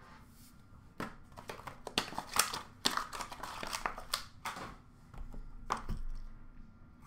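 Cards and small boxes rustle and clatter as they are handled.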